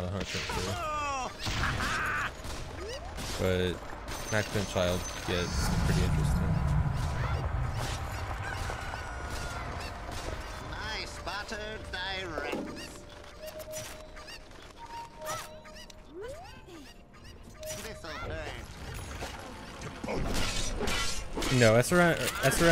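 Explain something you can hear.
Combat sounds clash and burst with quick hits and spell effects.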